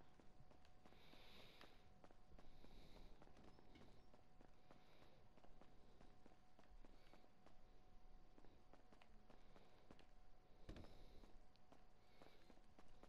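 Footsteps tread on a hard floor and stairs.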